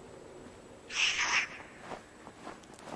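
A large bird screeches overhead.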